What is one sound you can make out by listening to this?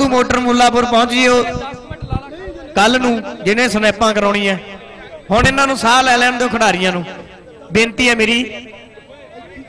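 A man announces loudly and with animation over a loudspeaker.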